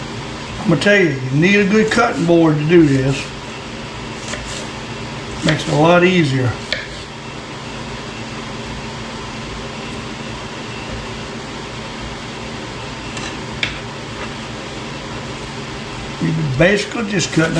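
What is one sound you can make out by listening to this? A knife taps on a cutting board as it chops an onion.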